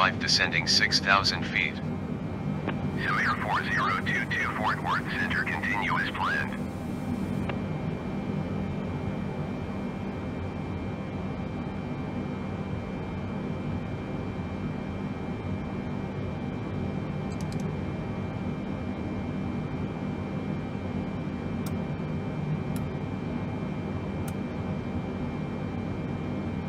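An aircraft's engines hum low and steadily.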